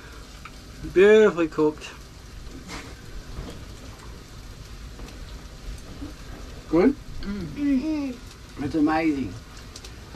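A woman talks and reacts nearby.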